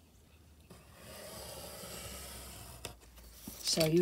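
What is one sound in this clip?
A pointed tool scrapes along a sheet of paper.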